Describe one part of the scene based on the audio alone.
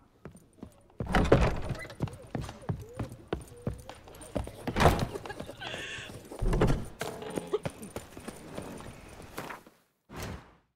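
Footsteps thud on wooden floors and stone.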